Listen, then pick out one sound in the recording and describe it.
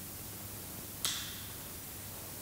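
An object is set down with a sharp knock that echoes through a large hall.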